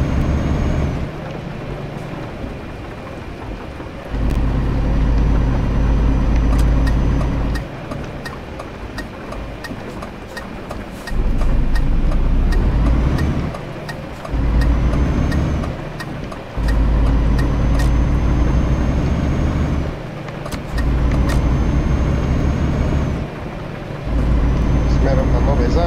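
Windscreen wipers swish back and forth.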